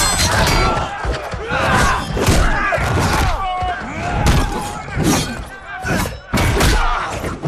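Fighters land heavy blows with dull thuds.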